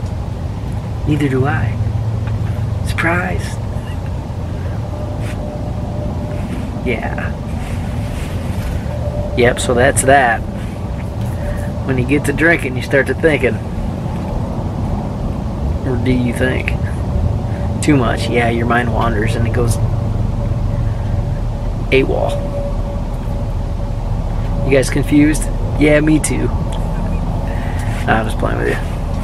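A man talks calmly and close by, in short bursts with pauses.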